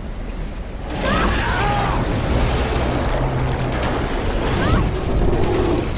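A young woman cries out.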